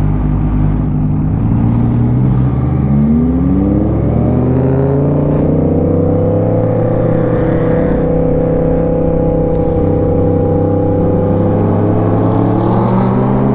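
A motorcycle engine rumbles up close and revs higher as it speeds up.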